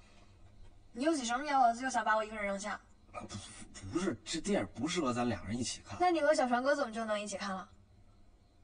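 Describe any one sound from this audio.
A young woman asks a question plaintively.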